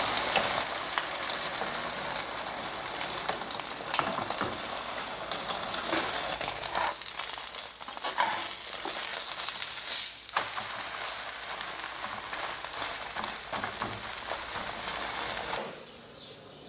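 Eggs sizzle steadily in a hot frying pan.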